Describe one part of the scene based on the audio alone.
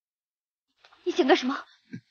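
A young woman asks anxiously.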